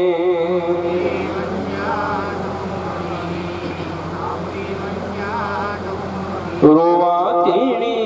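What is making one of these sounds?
A man sings a slow, drawn-out chant into a microphone, heard through a loudspeaker.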